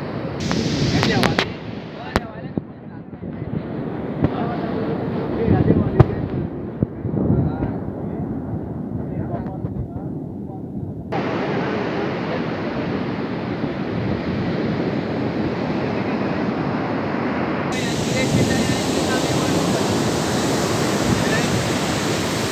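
Wind gusts and buffets loudly outdoors.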